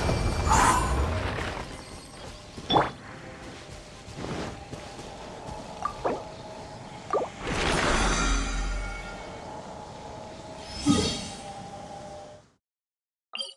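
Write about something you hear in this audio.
Game music and effects play.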